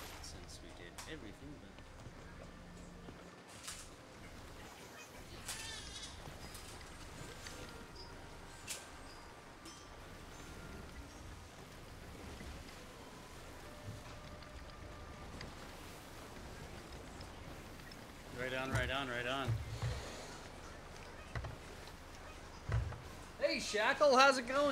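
Wind blows through the sails and rigging.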